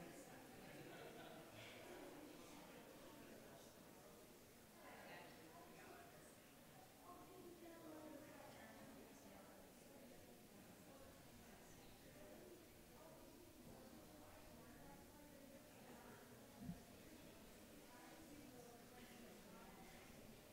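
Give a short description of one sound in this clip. An audience murmurs and chats quietly in a hall.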